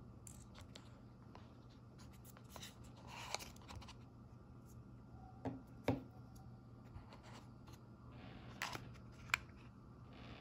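A plastic case taps and clicks as it is lifted out.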